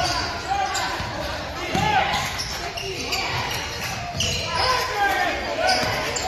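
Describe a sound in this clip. Spectators murmur and call out in an echoing hall.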